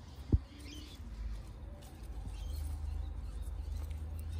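Leaves rustle softly as a hand brushes through a plant.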